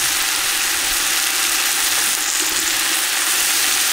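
Chopped tomatoes drop into a pot with a soft thud.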